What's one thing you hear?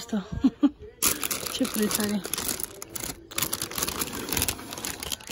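Plastic wrap crinkles as a hand brushes against it.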